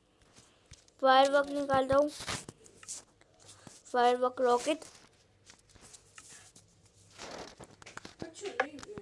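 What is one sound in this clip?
A young child talks with animation close to a microphone.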